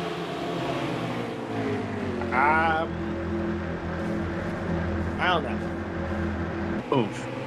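Race car engines drone steadily, rising and falling in pitch.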